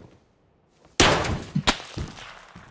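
A rifle fires loud, sharp shots.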